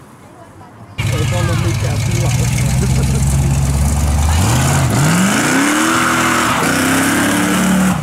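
A car engine roars loudly and revs up and down.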